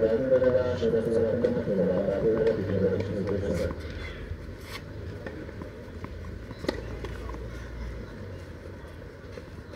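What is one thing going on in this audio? A tennis ball is struck with a racket, making sharp pops.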